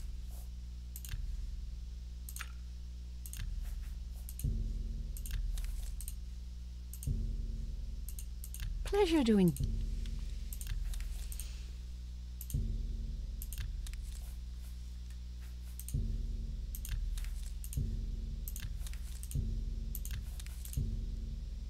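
Soft game menu clicks sound as items are selected.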